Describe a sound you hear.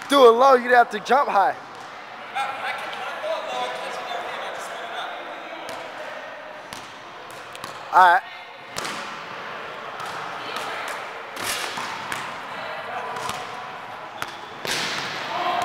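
A basketball bounces on a wooden floor in an echoing gym.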